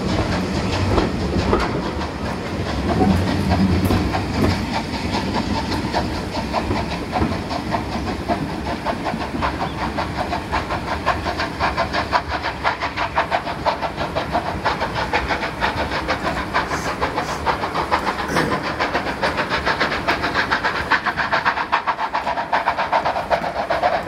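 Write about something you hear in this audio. A steam train chuffs rapidly as it pulls away into the distance.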